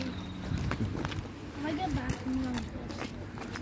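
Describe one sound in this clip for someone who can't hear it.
A young girl talks nearby.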